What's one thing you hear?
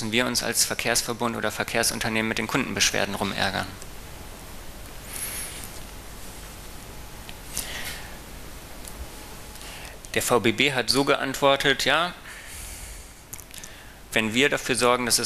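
A man speaks calmly into a microphone, as if giving a talk.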